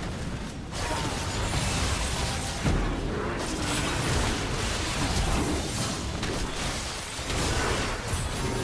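Magic spells crackle and blast in a fast, busy fight.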